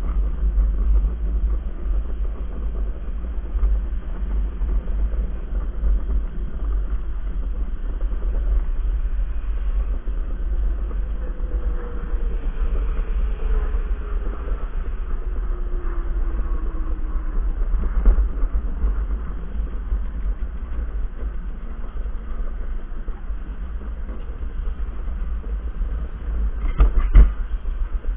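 Wind buffets a nearby microphone in a steady low roar.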